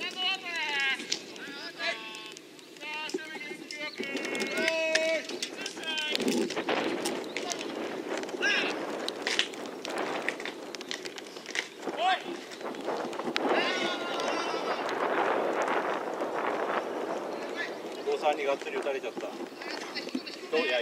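Young men shout and call out from across an open field.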